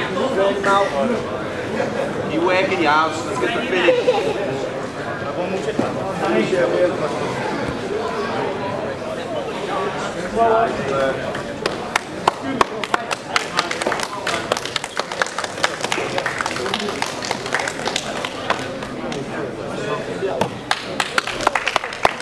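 Men shout and call out nearby in a large echoing hall.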